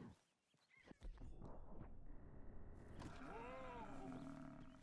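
A horse's hooves gallop over ground.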